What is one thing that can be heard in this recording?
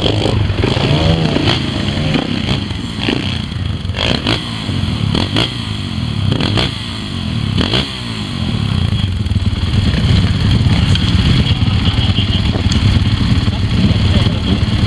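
A motorcycle engine revs hard and sputters as it climbs.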